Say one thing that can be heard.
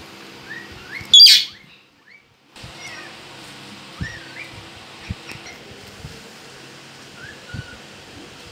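A rose-ringed parakeet makes soft whistled chirps.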